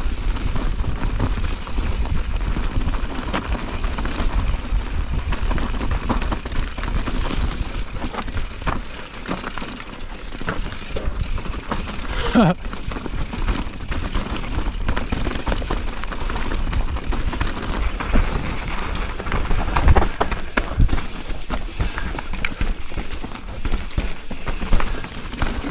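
Wind rushes past close by, loud and steady.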